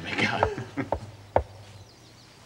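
A man laughs loudly and heartily close by.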